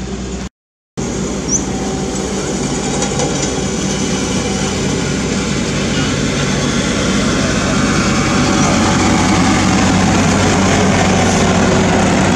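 A road roller's diesel engine rumbles steadily close by.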